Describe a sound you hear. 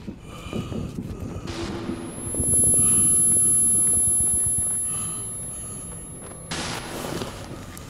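Flames roar and crackle close by.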